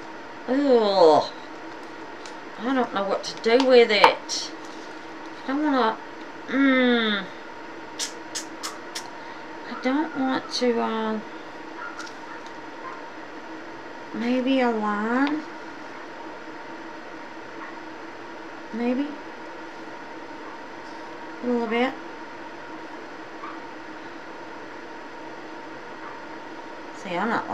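A woman talks calmly close by, in short phrases with pauses.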